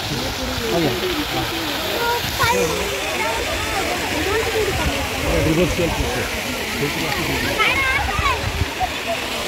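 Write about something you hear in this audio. Many birds call and chatter nearby.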